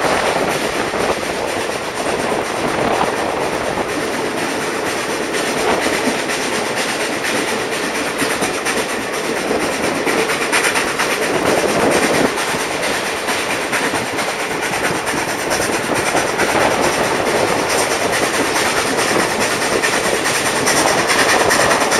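A train rumbles and clatters steadily along the track.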